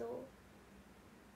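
A young woman speaks briefly, close to the microphone.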